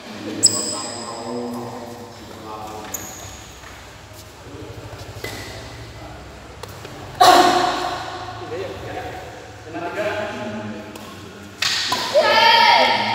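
A shuttlecock is struck with a racket with sharp pops.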